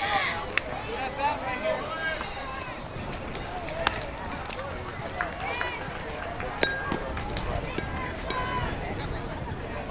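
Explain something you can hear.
Children shout and cheer outdoors across an open field.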